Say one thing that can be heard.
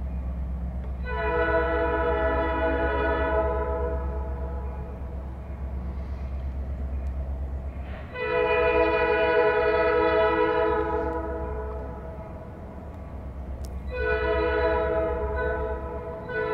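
A distant train horn blows in long blasts.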